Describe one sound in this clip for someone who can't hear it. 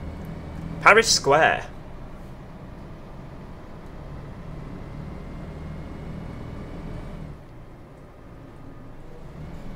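A bus engine hums steadily while driving.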